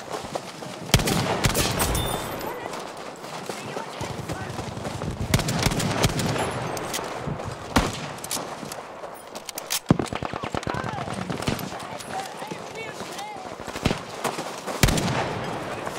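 A rifle fires loud, sharp shots that echo.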